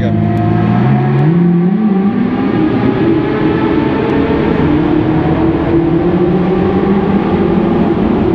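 A car engine revs up and roars, echoing loudly off close walls.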